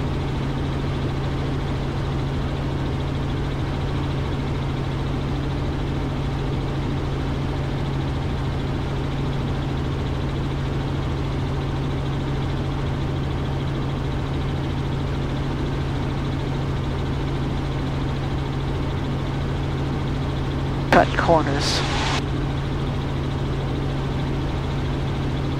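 A helicopter engine and rotor drone steadily from inside the cabin.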